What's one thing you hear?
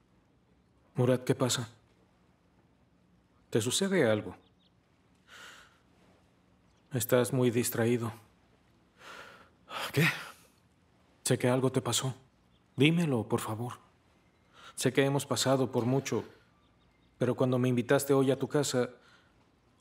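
A man speaks calmly and seriously, close by.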